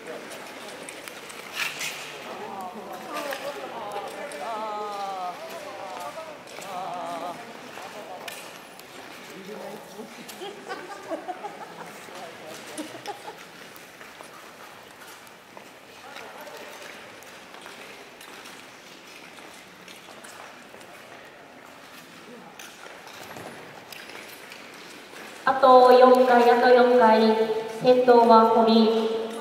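Ice skate blades scrape and hiss across the ice.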